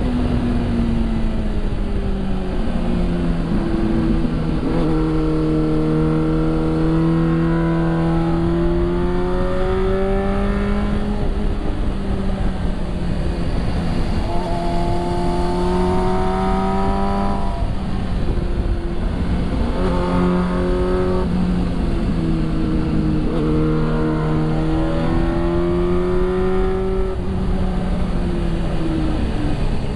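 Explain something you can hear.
A motorcycle engine hums steadily and rises and falls in pitch as the rider speeds up and slows down.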